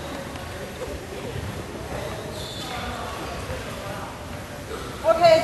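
A crowd of young people chatters and murmurs in a large echoing hall.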